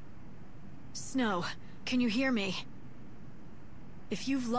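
A young woman calls out loudly.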